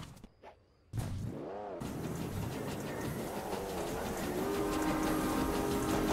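A car engine roars and revs up as it speeds along.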